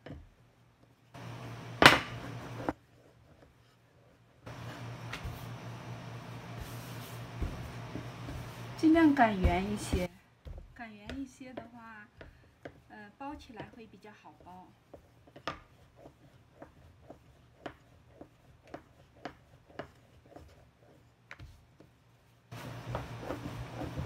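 A wooden rolling pin knocks and rolls against a metal counter.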